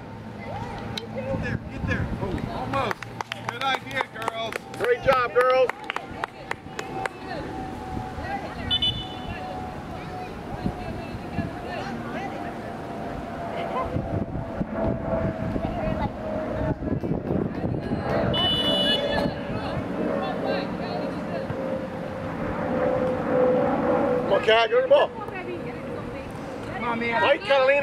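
Young girls shout and call out across an open field.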